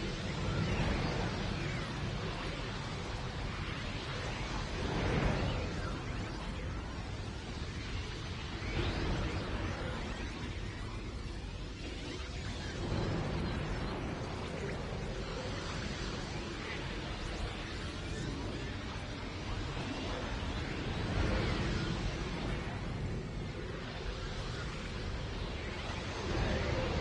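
A game character rushes through a tunnel with a loud whooshing roar.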